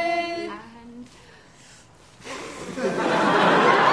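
A child blows out candles with a short puff of breath.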